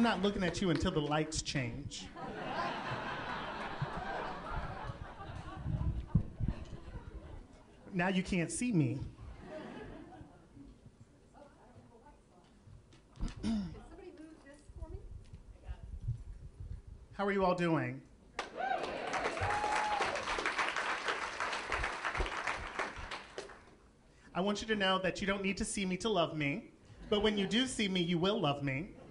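A woman speaks dramatically through a microphone.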